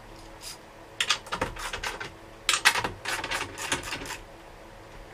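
Metal tools clink and rattle.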